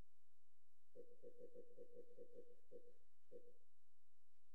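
Soft electronic menu blips tick in quick succession.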